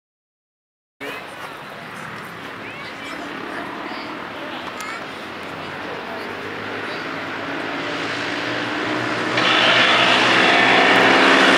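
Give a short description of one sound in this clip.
Racing karts with small engines buzz closer and grow louder.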